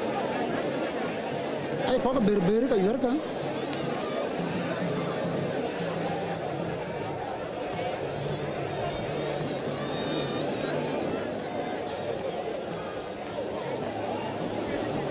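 A large outdoor crowd murmurs and chatters steadily.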